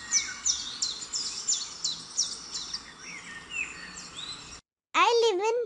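A small bird chirps and twitters.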